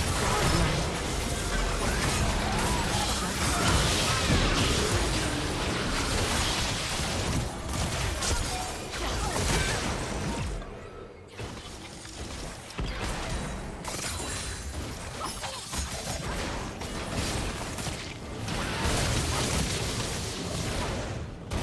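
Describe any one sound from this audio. Spell effects crackle and burst in a video game battle.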